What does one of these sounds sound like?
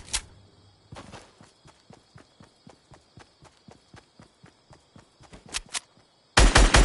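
Footsteps thud quickly on grass.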